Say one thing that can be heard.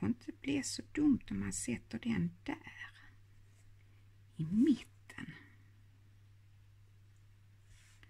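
Paper rustles softly under pressing hands.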